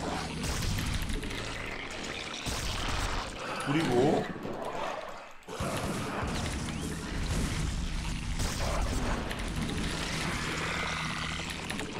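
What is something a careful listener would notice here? Electronic game sound effects of units fighting play in the background.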